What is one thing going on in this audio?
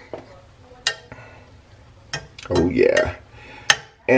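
A spoon stirs vegetables and clinks against a metal pot.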